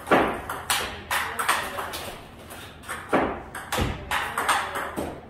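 A ping-pong ball clicks rapidly against paddles and a table in an echoing room.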